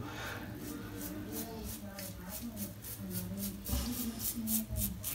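A razor scrapes across stubble in short strokes.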